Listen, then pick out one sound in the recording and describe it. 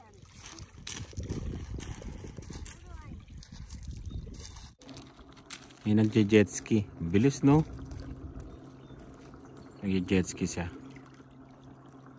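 Small waves lap gently at a pebbly shore.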